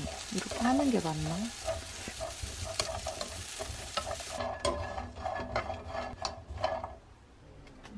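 A wooden spoon scrapes and stirs nuts in a pan.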